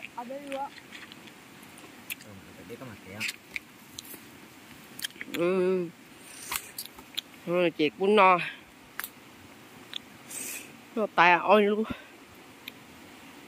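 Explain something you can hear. Mushrooms snap and crack as they are broken apart.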